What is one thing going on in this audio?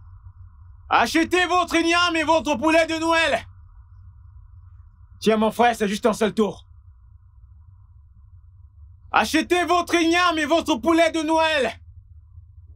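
A young man speaks loudly and with animation, close by.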